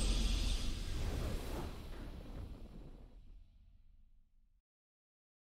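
A triumphant fanfare swells and slowly fades away.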